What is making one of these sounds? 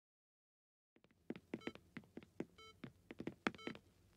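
Footsteps tap quickly across a wooden floor.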